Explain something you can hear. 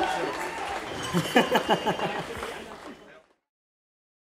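A live band plays upbeat music.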